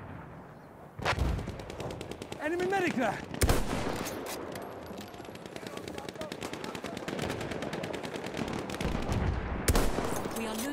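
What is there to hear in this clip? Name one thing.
A rifle fires sharp, loud shots with a booming echo.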